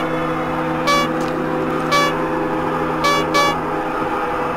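Bright electronic chimes ring out in short bursts.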